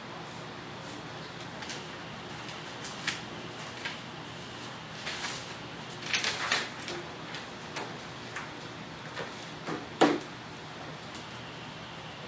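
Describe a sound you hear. Papers rustle and shuffle as they are handled.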